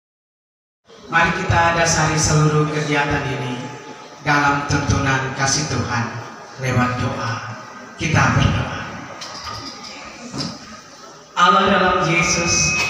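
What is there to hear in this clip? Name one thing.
An elderly woman speaks steadily into a microphone over a loudspeaker, with some pauses.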